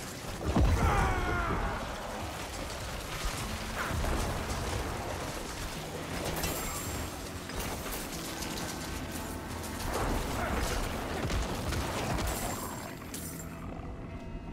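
Game combat effects crash and whoosh.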